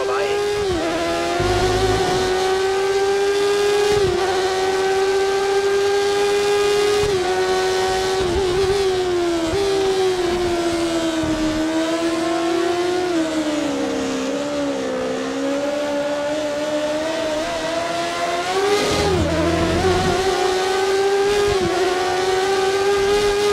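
A racing car engine whines loudly at high revs, rising and dropping with each gear change.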